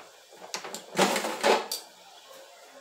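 A plastic air fryer basket clatters as it is pulled out.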